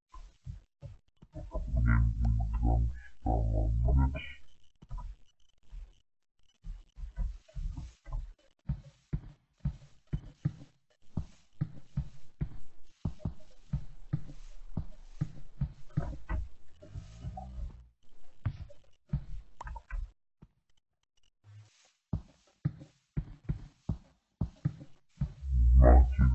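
Blocks are set down with soft, dull thuds.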